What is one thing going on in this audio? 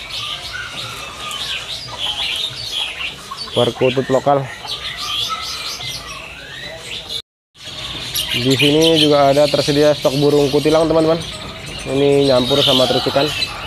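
Many small birds chirp and twitter busily.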